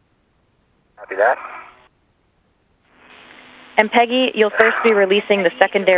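A man speaks calmly over a crackly radio link.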